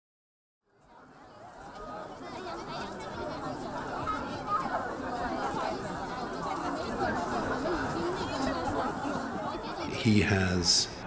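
A large crowd chatters and murmurs.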